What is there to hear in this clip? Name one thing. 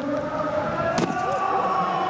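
Skis slap down onto a snowy landing slope.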